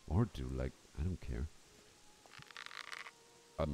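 A bowstring creaks as a bow is drawn.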